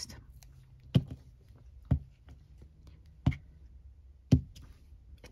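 A rubber stamp taps sharply on an ink pad a few times.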